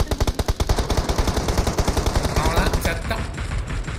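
A buggy engine roars as it drives.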